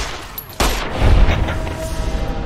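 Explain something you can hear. A heavy blow lands with a deep thud.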